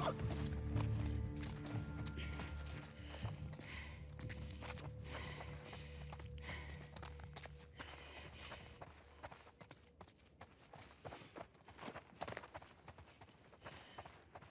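Footsteps tread softly across a hard floor.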